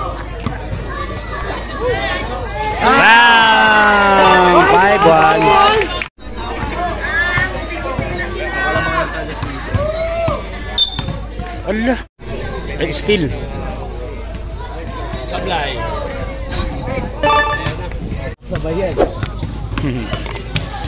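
A crowd of young people chatters and shouts outdoors.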